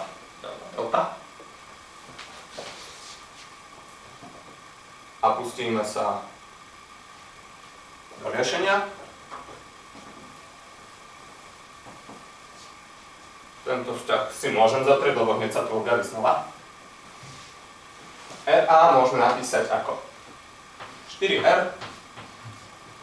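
A young man speaks calmly in short bursts.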